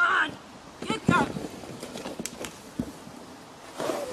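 A horse crashes down onto the ground.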